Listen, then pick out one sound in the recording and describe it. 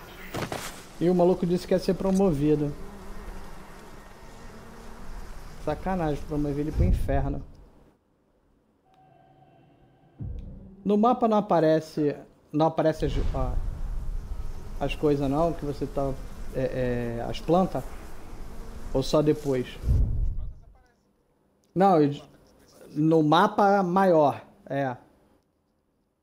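A middle-aged man talks with animation into a microphone close by.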